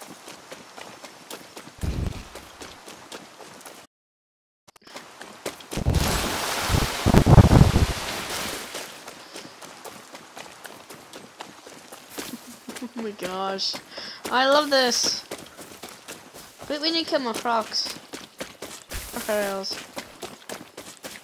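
Footsteps thud on wet ground.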